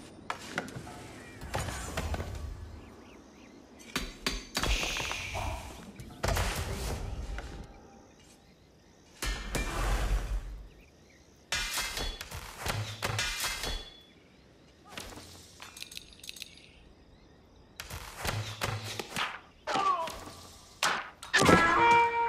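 Short bursts of game sound effects play, with clicks and chimes.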